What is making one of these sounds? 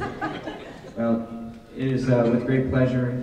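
A middle-aged man speaks into a microphone.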